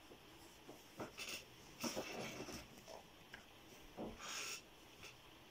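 Clothing rustles and bumps close by.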